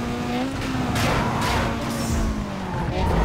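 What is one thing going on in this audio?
A car body scrapes along a barrier.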